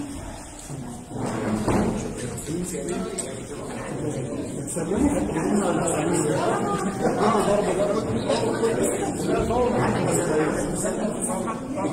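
Several men talk and murmur at once nearby.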